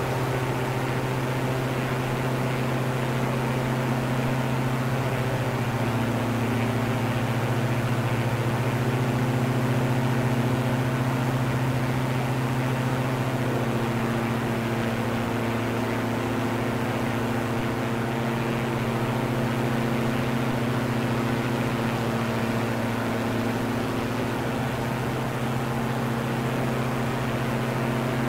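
A propeller plane's engine drones steadily, its pitch shifting slightly now and then.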